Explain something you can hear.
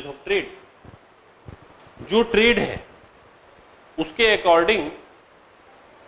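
A man speaks calmly into a clip-on microphone, in short bursts with pauses.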